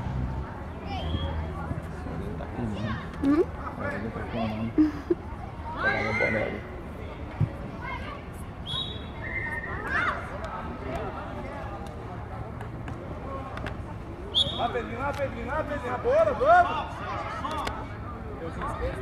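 Children shout and call out at a distance.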